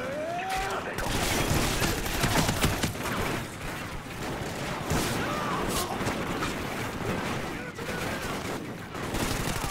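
Rapid gunfire rattles loudly and close.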